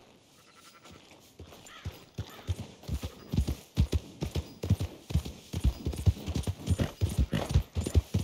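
A horse's hooves thud rhythmically on soft ground at a trot.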